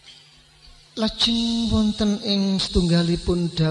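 An elderly man chants a prayer through a loudspeaker.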